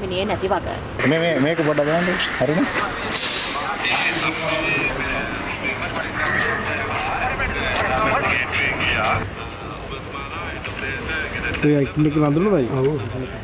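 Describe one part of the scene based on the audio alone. A middle-aged man speaks with agitation close by.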